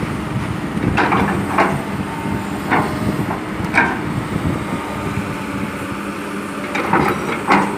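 An excavator bucket clanks sharply.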